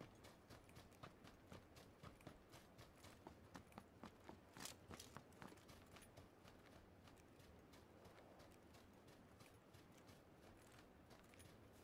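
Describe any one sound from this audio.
Footsteps crunch steadily through dry grass.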